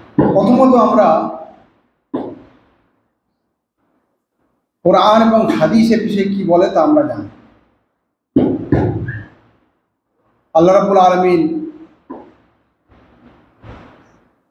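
A middle-aged man speaks through a microphone in bursts, with pauses between phrases.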